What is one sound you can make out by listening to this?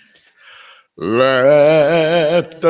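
An older woman sings a slow melody into a microphone.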